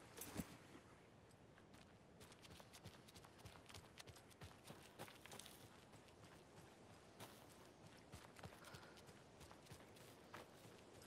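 Footsteps crunch through grass and dry leaves.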